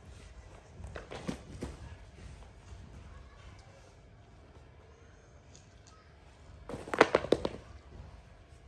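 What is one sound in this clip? Shoes knock and clatter as they are handled.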